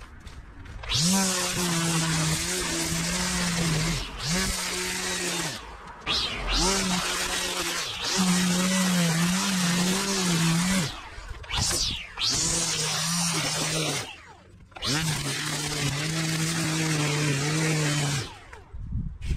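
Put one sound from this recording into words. A string trimmer whines loudly as it cuts grass, revving up and down in bursts.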